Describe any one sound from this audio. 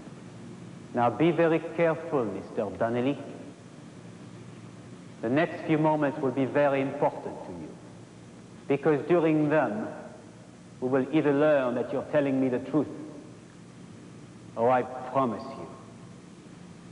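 A man speaks calmly, close by, with pauses.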